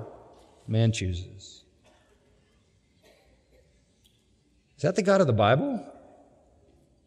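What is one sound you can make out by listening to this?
An elderly man preaches emphatically through a microphone in a large echoing hall, with long pauses.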